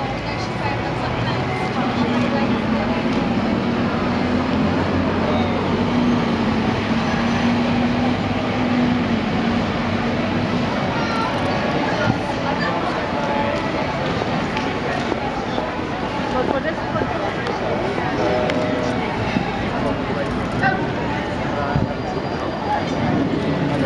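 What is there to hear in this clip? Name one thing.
A crowd murmurs in a busy street.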